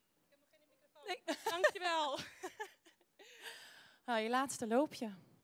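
A second young woman answers with animation through a microphone.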